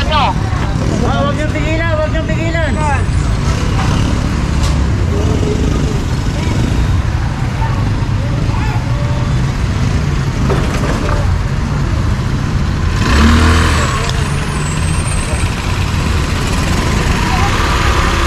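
Traffic hums steadily on an outdoor street.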